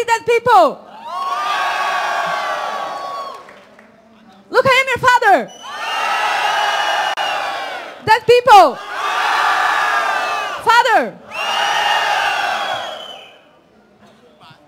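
A large crowd shouts back in unison.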